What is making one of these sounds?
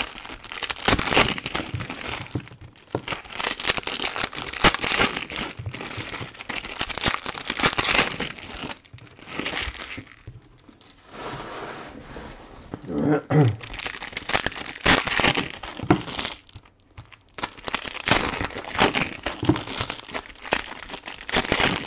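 Plastic card wrappers crinkle and rustle close by.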